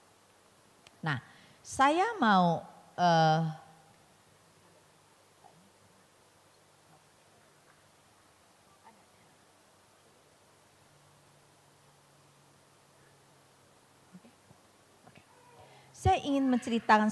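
A middle-aged woman speaks calmly into a microphone, with pauses.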